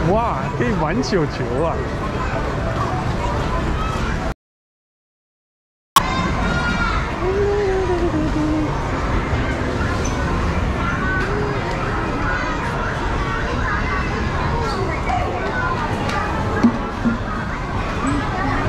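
Children and adults chatter around the room.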